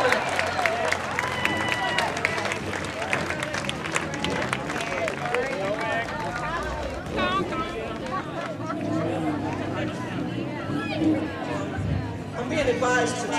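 A crowd of adults and children chatters outdoors all around.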